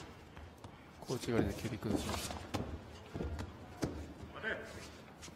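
Heavy cloth rustles and snaps as two men grapple.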